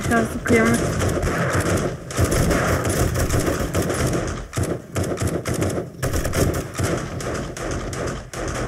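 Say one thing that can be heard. A mounted gun fires rapid bursts of shots.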